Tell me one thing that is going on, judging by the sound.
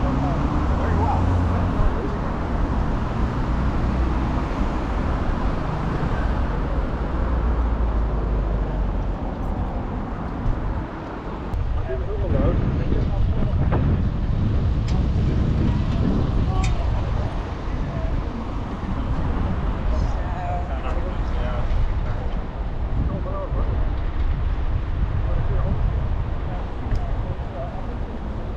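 Wind rumbles loudly outdoors.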